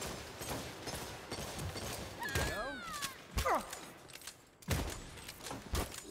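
Gunfire and blasts crackle in a game fight.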